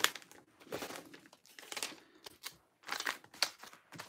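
A sticker is peeled and pressed onto paper.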